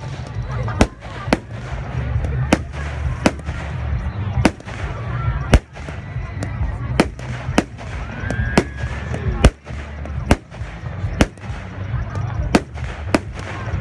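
Fireworks burst with loud sharp bangs, one after another.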